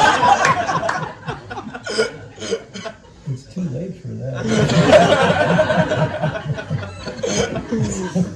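A middle-aged man laughs.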